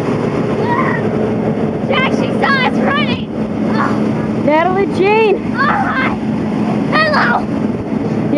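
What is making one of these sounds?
A bus pulls away with a rising engine roar.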